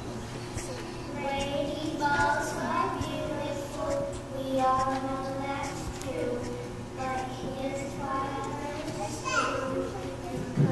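A young child sings into a microphone.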